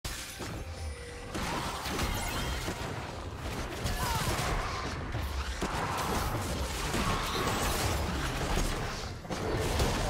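Video game spells whoosh and crackle during a fight.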